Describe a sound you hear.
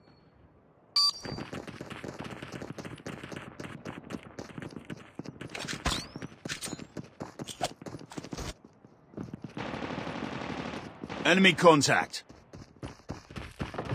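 Footsteps thud quickly while running.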